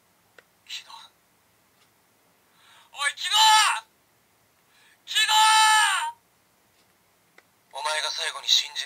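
A toy belt plays loud recorded voice calls and electronic effects through a small speaker.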